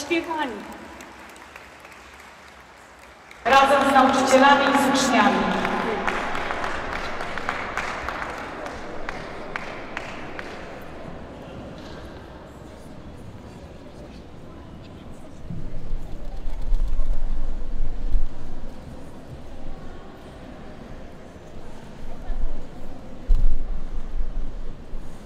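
Many feet shuffle and step on a hard floor in a large echoing hall.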